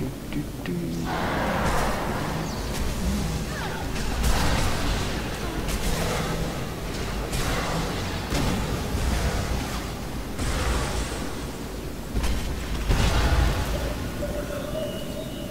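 Blasters fire and blades clash in a fight.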